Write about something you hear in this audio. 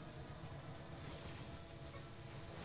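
A turbo boost whooshes.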